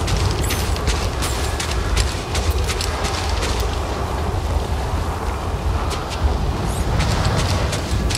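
A strong wind roars and gusts outdoors.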